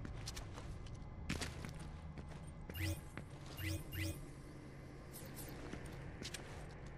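Footsteps run on a tiled floor.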